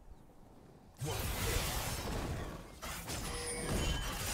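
Fighting sound effects from a video game clash and crackle.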